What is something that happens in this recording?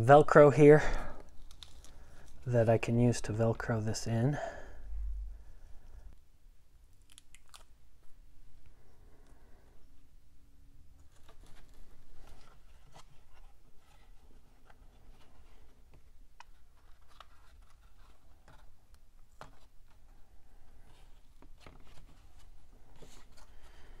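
Fabric rustles softly as hands handle and press it.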